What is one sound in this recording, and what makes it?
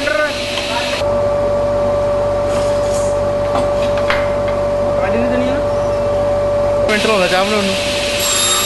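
A table saw motor hums steadily.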